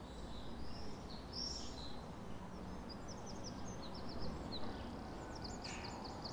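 Small birds chirp and twitter high overhead, outdoors.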